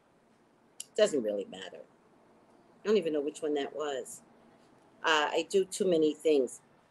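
A middle-aged woman speaks calmly and close to a microphone, in short phrases with pauses.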